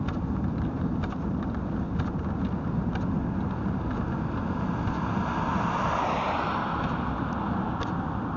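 Wind buffets the microphone steadily.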